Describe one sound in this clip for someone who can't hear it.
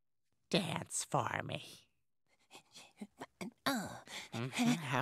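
A boy talks excitedly, close by.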